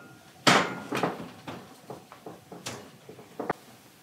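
An oven door opens and shuts with a clunk.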